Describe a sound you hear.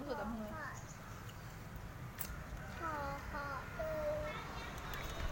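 A young girl speaks excitedly in a high voice close by.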